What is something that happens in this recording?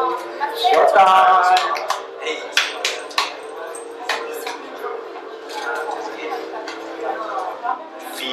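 A crowd of young people chatters in the background.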